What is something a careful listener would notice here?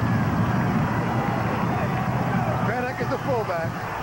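A large crowd cheers and shouts in the open air.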